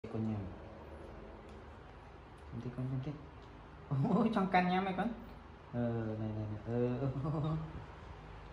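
A banana peel rustles softly as it is pulled open.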